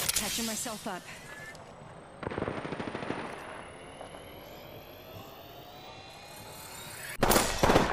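A medical kit is applied with a soft electronic hum.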